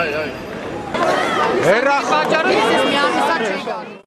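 A large crowd of men and women chants and shouts together outdoors.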